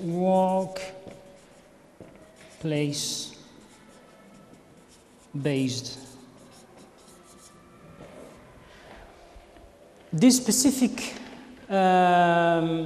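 A man speaks in short drawn-out bursts nearby.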